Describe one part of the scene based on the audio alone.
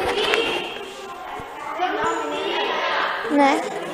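A young woman talks nearby in an echoing hall.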